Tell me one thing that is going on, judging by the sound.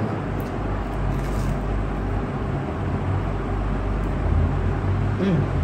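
A young man chews and slurps food close by.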